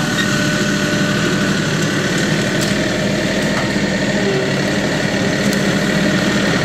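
Hydraulics whine as a tractor raises its loader arms.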